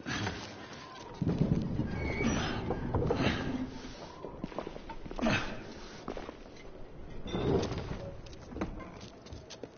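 A heavy wooden cart scrapes and rumbles as it is pushed.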